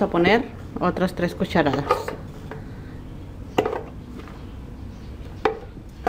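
A spoon scrapes and scoops corn kernels.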